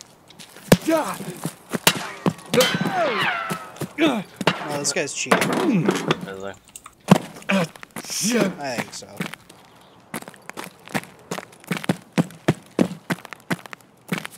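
Footsteps thud on hard ground at a steady walking pace.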